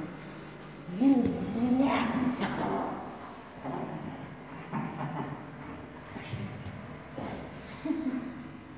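A dog whines and yelps excitedly close by.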